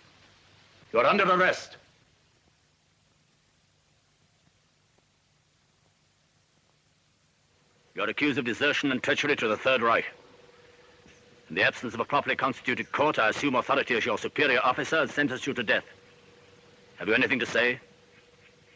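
A man speaks in a low, serious voice.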